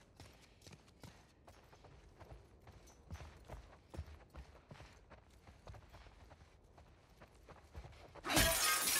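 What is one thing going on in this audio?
Footsteps thud and scuff softly on a hard floor.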